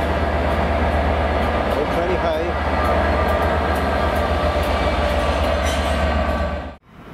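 A diesel train engine rumbles loudly close by as the train pulls past.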